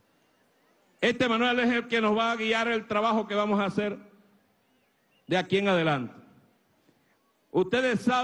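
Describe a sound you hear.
An elderly man speaks loudly and with animation through a microphone over loudspeakers.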